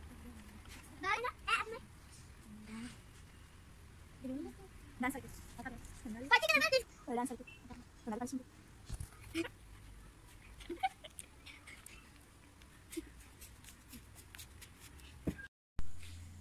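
A young boy talks and laughs nearby.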